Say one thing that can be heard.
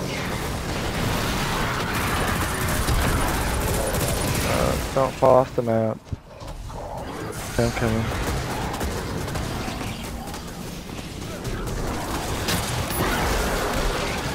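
Gunfire and explosions crackle and boom in a game.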